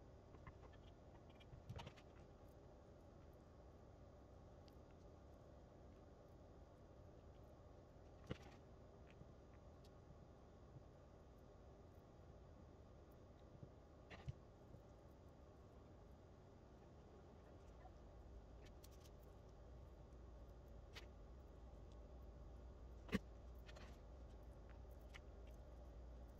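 Gloved hands handle and turn a beaded object.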